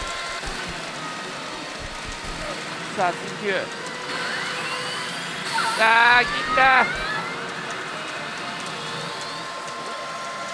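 A pachinko machine plays electronic music and sound effects.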